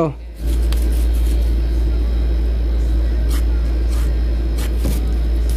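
A pen scratches across cardboard.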